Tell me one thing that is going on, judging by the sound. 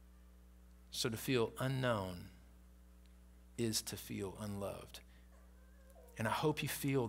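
A man speaks with emphasis through a microphone, pausing between phrases.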